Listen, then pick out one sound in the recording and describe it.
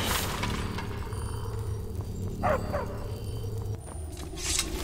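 A magic spell hums and crackles steadily.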